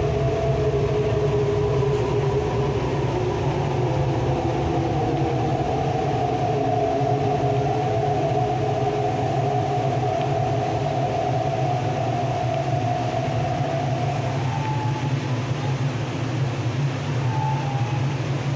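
An electric multiple-unit train rumbles along the track, heard from inside the carriage.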